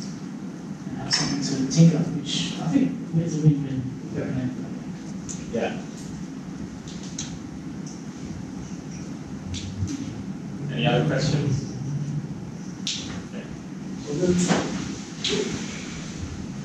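A man speaks in a room, heard from across it.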